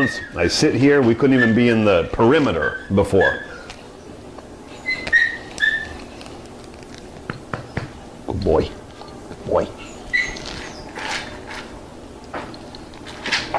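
A dog eats kibble from a bowl.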